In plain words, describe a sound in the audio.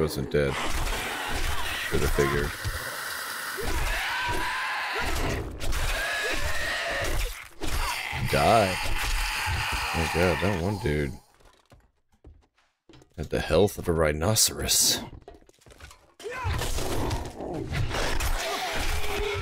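Knives slash and stab into flesh with wet thuds.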